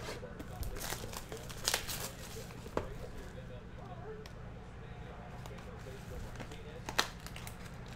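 Plastic wrap crinkles as a box is unwrapped.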